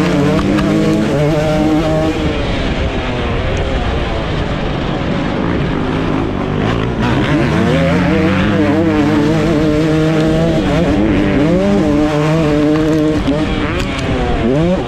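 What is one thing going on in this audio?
A dirt bike engine roars up close, revving up and down as it shifts gears.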